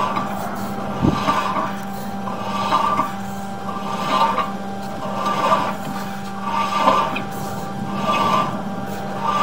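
Water splashes and gurgles through a pipe.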